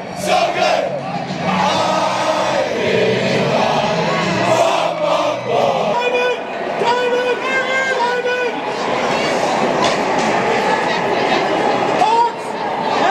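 A crowd of young people shouts and cheers loudly in a large echoing arena.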